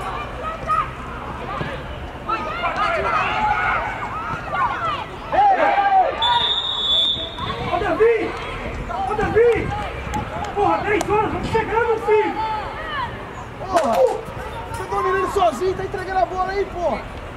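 Young men shout and call out to each other across an open field.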